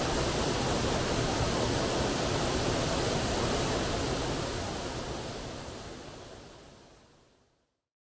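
A waterfall splashes steadily into a pool, then fades away.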